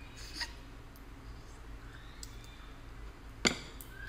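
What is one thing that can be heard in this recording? A young woman chews and smacks her lips.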